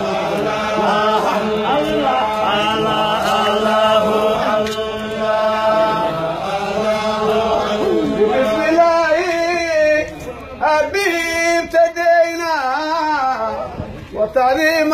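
A group of men chant and sing together outdoors.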